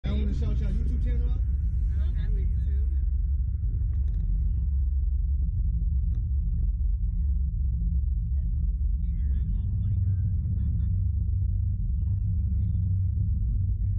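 Wind rumbles loudly against a microphone outdoors.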